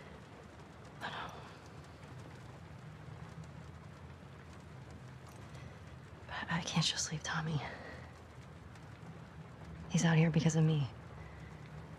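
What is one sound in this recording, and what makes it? A young woman speaks softly and sadly.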